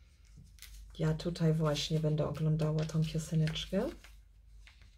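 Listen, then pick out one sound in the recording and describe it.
A young woman sings a few drawn-out notes close by.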